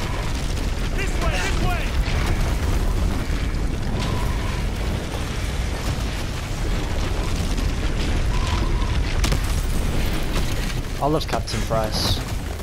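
A man shouts over the gunfire.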